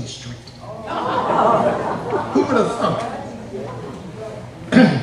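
An elderly man laughs.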